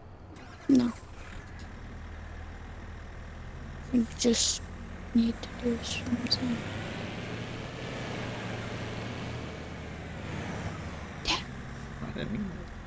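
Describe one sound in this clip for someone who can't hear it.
A pickup truck's diesel engine hums steadily as it drives.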